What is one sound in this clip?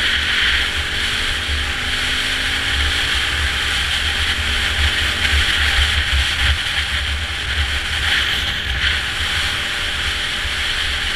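A dirt bike engine buzzes steadily close by.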